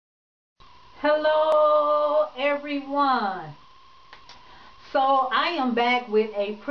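A woman speaks with animation close to the microphone, her voice rising and falling in a sing-song way.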